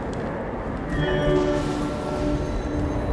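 Soft chiming tones ring out.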